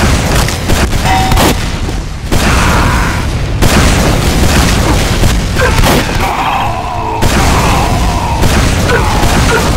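Rockets explode with heavy booms.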